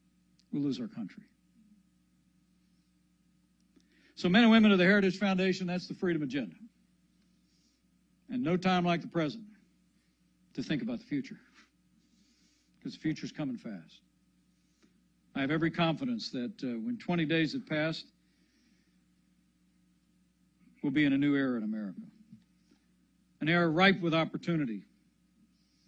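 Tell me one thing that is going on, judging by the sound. A man speaks slowly and deliberately into a microphone, with long pauses.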